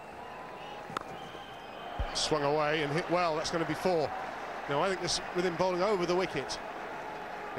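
A large crowd cheers loudly in a stadium.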